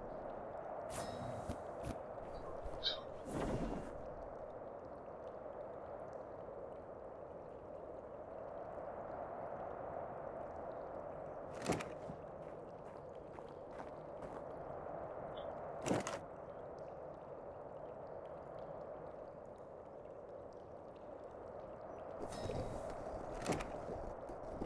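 Short game menu clicks and swishes sound now and then.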